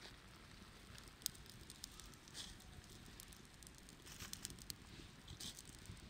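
A small fire crackles and pops.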